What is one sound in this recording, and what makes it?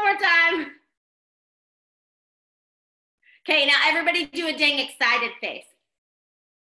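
A young woman talks cheerfully and with animation over an online call.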